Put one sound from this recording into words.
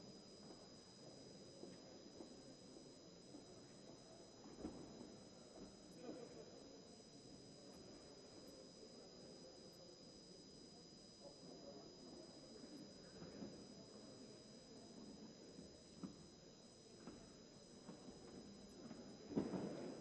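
Many people murmur and talk quietly in a large echoing hall.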